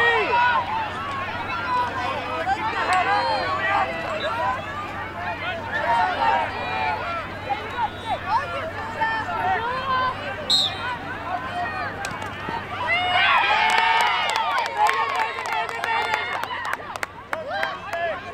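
A crowd of girls and spectators chatters and calls out across an open field.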